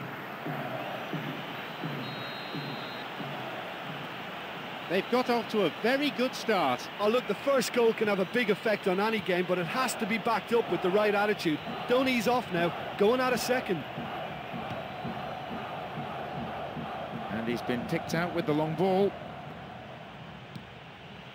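A large crowd murmurs steadily in a stadium.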